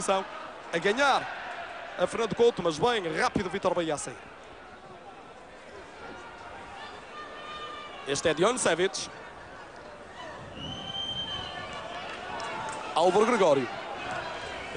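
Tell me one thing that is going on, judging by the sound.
A stadium crowd murmurs in a large open space.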